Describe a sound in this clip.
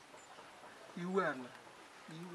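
An elderly man exclaims loudly.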